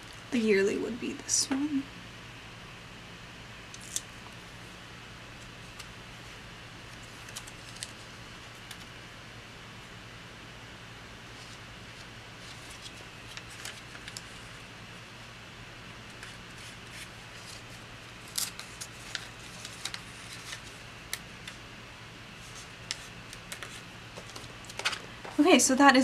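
Paper rustles and crinkles softly close by.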